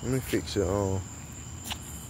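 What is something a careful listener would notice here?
A dog pants softly.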